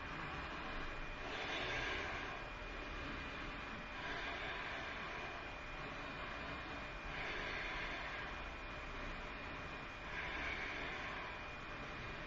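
A woman breathes slowly and deeply.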